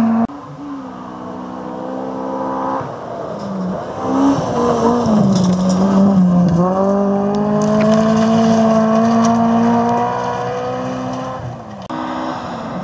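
A rally car engine roars at high revs as it races past and fades away.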